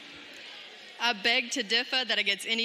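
A woman speaks with animation into a microphone, heard over loudspeakers in a large echoing hall.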